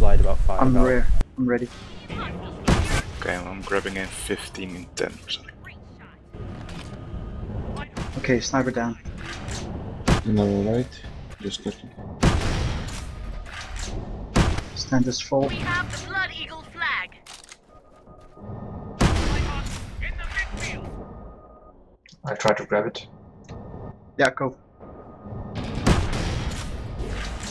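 A gun fires sharp shots in a game.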